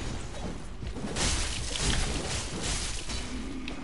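A heavy blow crashes to the ground with a burst of impact.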